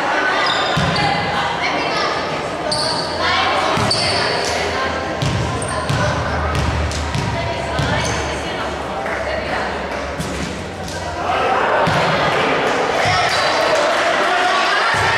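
Young women shout and call out to each other across the court.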